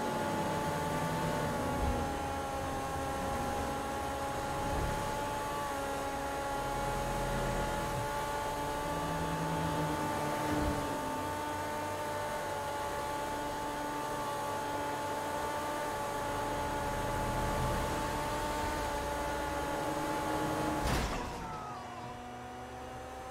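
A car engine hums steadily as it drives along a highway.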